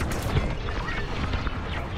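Footsteps walk quickly along a hard floor.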